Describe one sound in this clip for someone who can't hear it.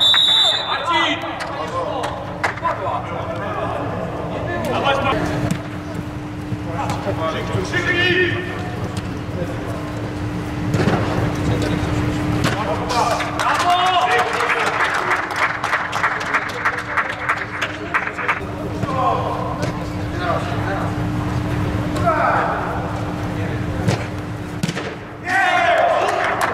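Men shout to each other across a large echoing hall.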